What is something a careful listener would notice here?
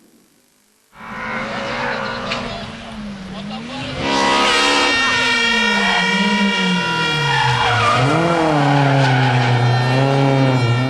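A racing car engine roars and revs hard as the car speeds past nearby.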